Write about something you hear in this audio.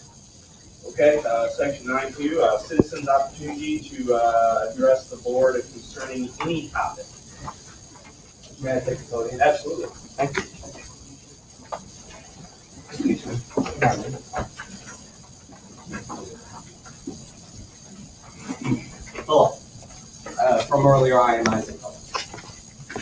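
A man speaks steadily through a loudspeaker in a room with some echo, with pauses.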